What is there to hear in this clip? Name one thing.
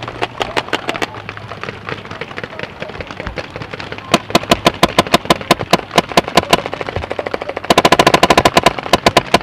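A paintball marker fires rapid bursts of shots close by.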